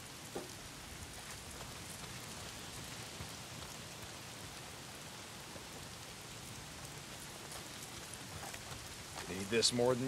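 Footsteps rustle softly through leaves and undergrowth.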